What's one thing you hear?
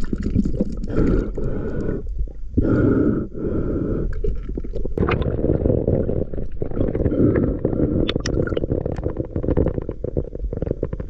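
Air bubbles gurgle and rumble close by underwater.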